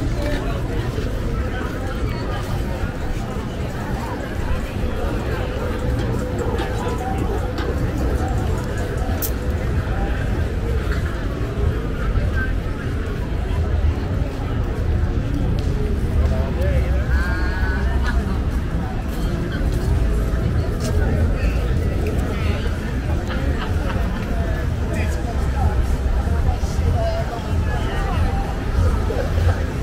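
A crowd of people chatter outdoors along a busy street.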